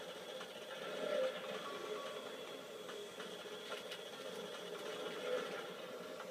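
Video game explosions boom through a television speaker.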